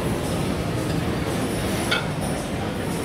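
A ceramic bowl clinks against a plate.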